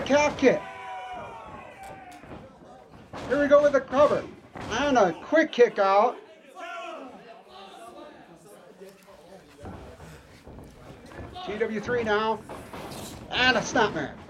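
Bodies thud heavily onto a canvas mat.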